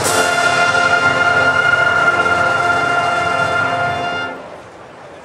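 A brass band plays a loud sustained final chord outdoors.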